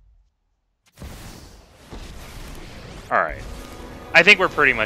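A magical beam zaps across with a crackle.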